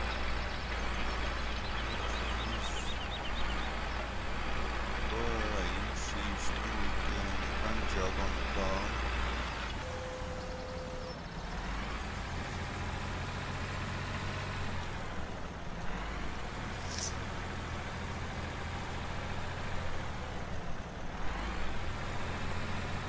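A tractor engine chugs steadily.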